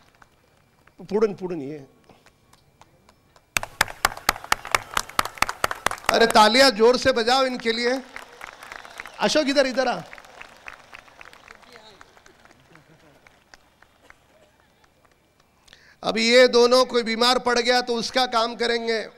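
A man speaks loudly and forcefully through a microphone, amplified over loudspeakers.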